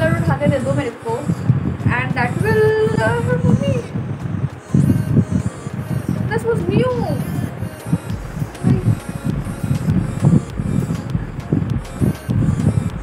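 A young woman speaks close to a microphone with animation, her voice rising and falling.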